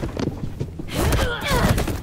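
A young woman grunts in a scuffle.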